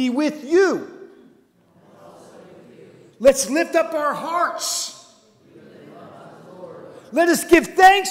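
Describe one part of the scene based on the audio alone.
A man speaks loudly into a microphone in a reverberant hall.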